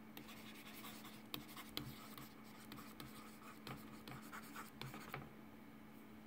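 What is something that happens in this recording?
A pen taps and scratches lightly on a plastic tablet.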